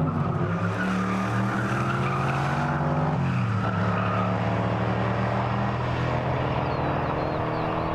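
Tyres squeal on tarmac as a car drifts.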